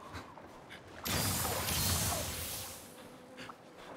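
A magical burst crackles and shimmers.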